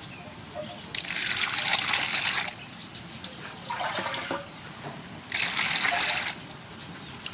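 Water pours and splashes into a metal basin.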